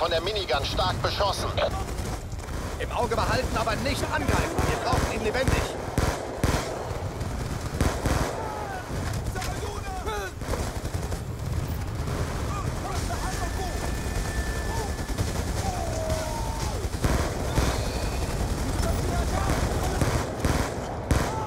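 Rapid gunshots crack in bursts, close by.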